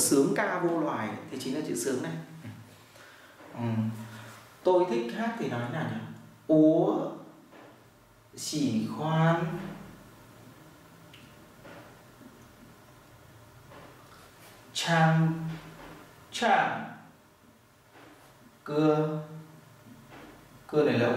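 A man speaks clearly and calmly close by, pausing between phrases.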